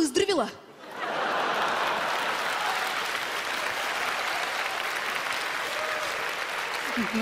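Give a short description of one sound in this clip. A studio audience laughs and applauds loudly.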